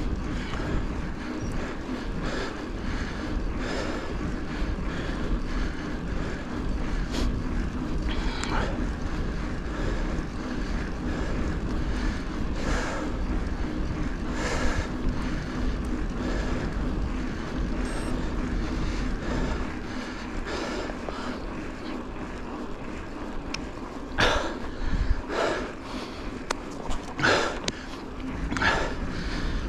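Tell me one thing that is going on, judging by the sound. Wind buffets loudly past a moving bicycle.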